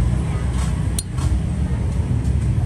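A metal lighter clicks sharply as its lid flips open.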